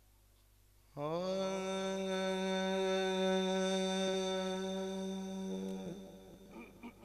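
A man holds a long, steady sung note through a microphone.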